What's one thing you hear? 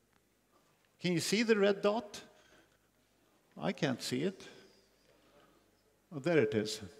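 An elderly man lectures calmly through a microphone, in bursts with pauses.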